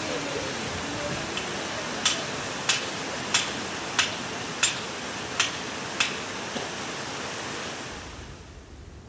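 A river rushes and churns over stones.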